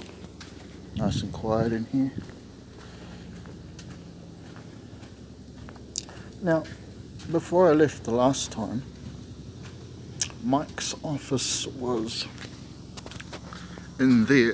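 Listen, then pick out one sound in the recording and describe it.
A middle-aged man talks close to a phone microphone.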